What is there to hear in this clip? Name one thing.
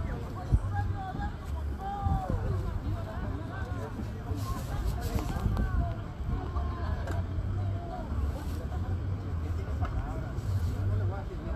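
A crowd of men and women chatters loudly outdoors.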